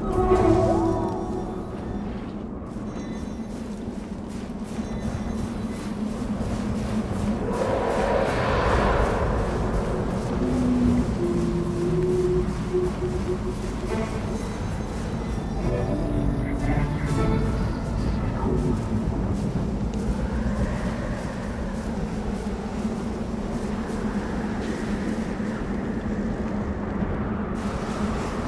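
Wind howls steadily over open snow.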